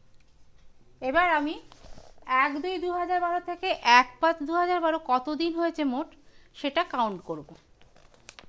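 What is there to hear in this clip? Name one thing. A middle-aged woman speaks clearly and with animation into a close microphone.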